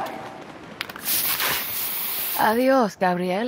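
A spray can hisses in a short burst.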